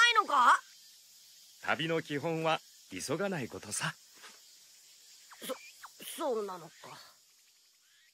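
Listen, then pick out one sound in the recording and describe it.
A woman speaks calmly in a character voice.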